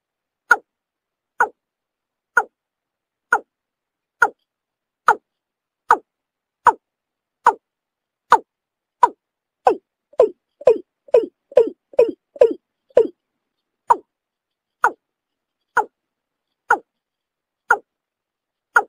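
A bird gives short, sharp calls over and over, quickening for a moment in the middle.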